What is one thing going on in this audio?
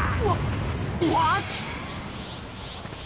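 A man gasps in shock.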